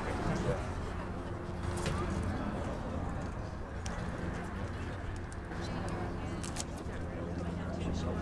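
A distant crowd murmurs outdoors.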